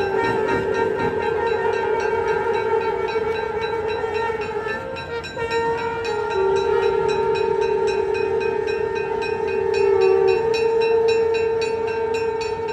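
Hand bells ring rapidly and steadily.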